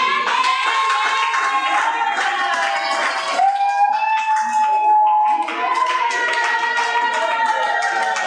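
A large crowd sings together.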